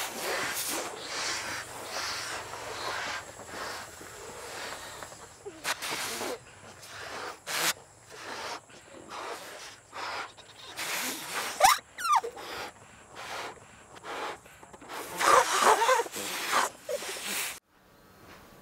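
Children blow air into balloons with breathy puffs.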